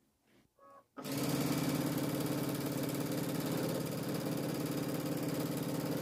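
A sewing machine stitches rapidly with a steady whirring hum.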